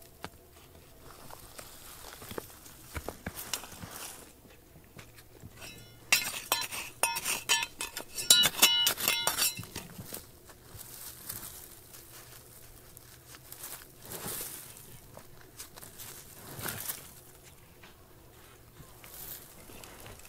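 A hand scrapes and scratches at dry, gravelly soil.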